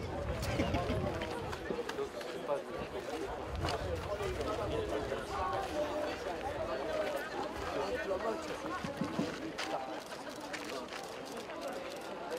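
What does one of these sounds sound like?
A young man laughs nearby.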